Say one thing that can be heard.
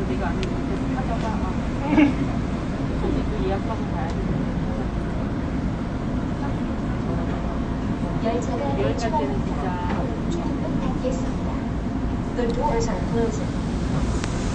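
A young man speaks quietly close to a microphone.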